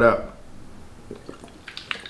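A young man gulps water from a bottle.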